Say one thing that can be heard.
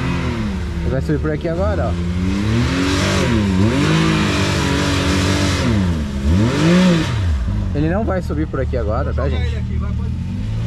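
A man talks over the engine noise.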